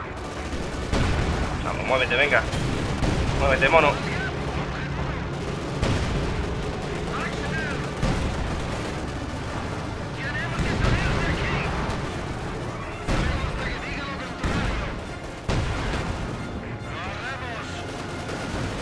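Gunfire and explosions boom and crack.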